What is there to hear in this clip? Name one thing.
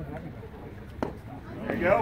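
A pitched baseball smacks into a leather catcher's mitt.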